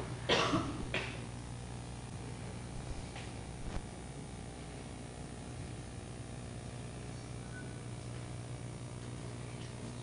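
Fabric rustles softly as a cloth is folded back.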